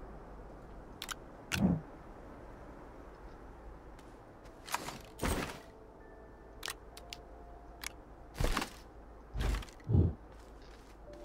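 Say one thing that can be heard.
Short whooshing and popping game sound effects play now and then.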